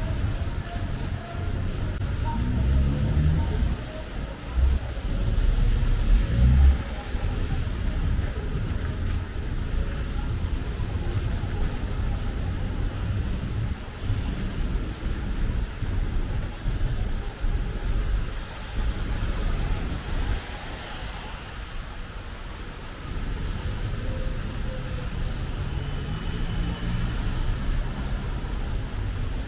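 Footsteps splash on a wet pavement.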